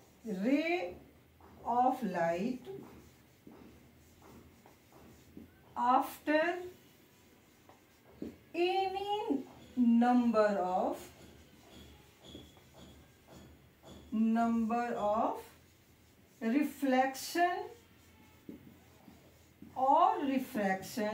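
A woman speaks calmly and clearly up close, explaining in short phrases.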